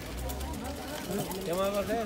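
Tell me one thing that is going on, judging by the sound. A shopping trolley's wheels roll over paving stones.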